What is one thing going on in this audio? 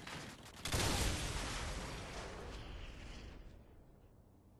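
An explosion booms and rumbles away in a video game.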